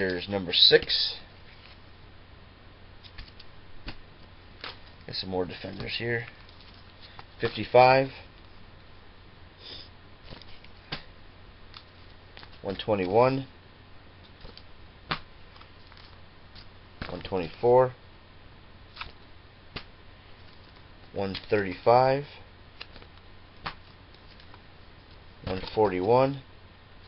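A man speaks briefly and calmly, close to a microphone, with pauses between phrases.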